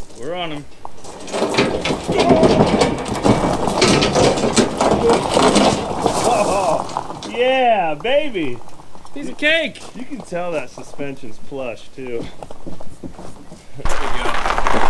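A man talks with animation outdoors, heard from a short distance.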